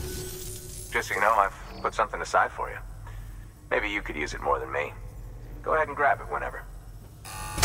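A man speaks calmly and warmly through a faint electronic filter.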